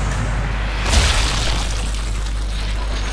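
A bullet strikes a body with a wet, crunching thud.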